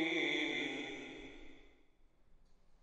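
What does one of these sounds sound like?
A man speaks firmly into a microphone over a loudspeaker.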